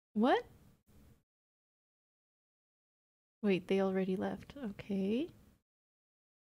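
A young woman speaks with animation into a microphone, heard close up.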